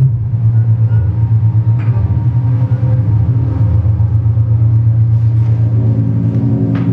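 Electronic music pulses with a deep, throbbing bass drone over loudspeakers.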